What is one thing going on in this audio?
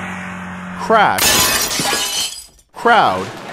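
Glass shatters.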